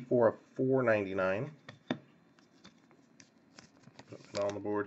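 Trading cards shuffle and click softly between fingers.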